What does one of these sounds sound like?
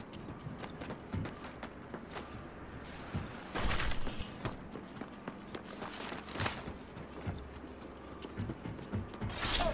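Quick footsteps thud on hard metal floors.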